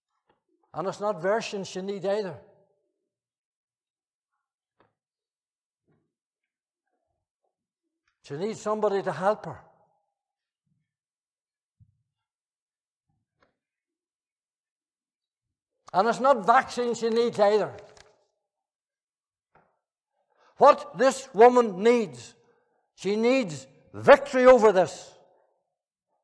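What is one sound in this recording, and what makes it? An elderly man preaches with emphasis through a microphone, pausing between phrases.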